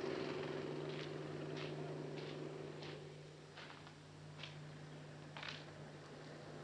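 Footsteps walk along a paved path.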